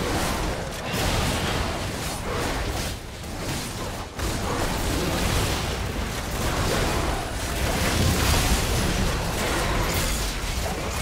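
Magic blasts and weapon hits crash and crackle in a computer game battle.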